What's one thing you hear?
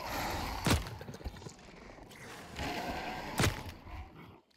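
A gun fires loud single shots.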